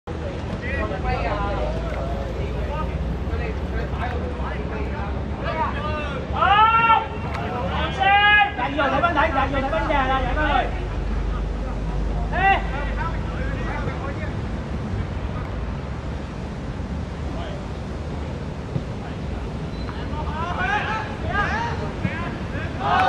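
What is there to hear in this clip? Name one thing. Young men shout to each other on an open outdoor pitch.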